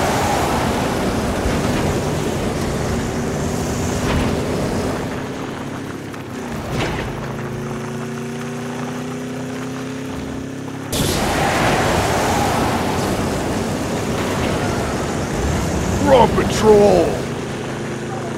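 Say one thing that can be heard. Tyres rumble over rough ground.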